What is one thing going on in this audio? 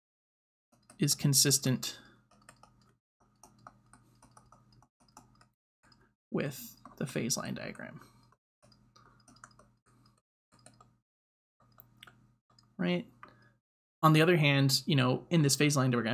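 A young man speaks calmly and explains, close to a microphone, in short bursts with pauses.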